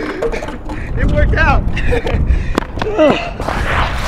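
A bike crashes onto concrete.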